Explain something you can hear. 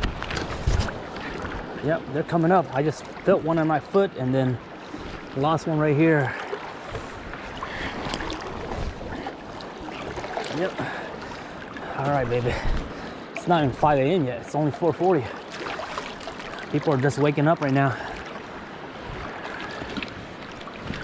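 Water laps and splashes softly.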